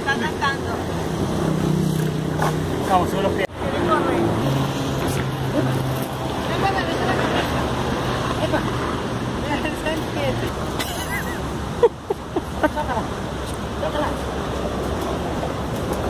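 A man talks encouragingly to a small child nearby.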